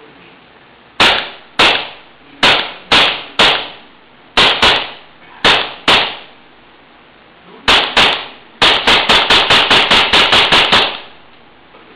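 A semi-automatic pistol fires a string of shots, some in rapid bursts.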